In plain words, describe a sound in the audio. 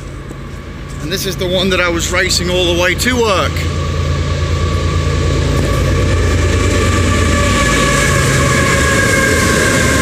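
A train rumbles past nearby, growing louder and steady.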